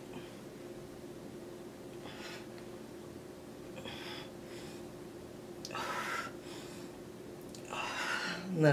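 A young man breathes heavily in short bursts.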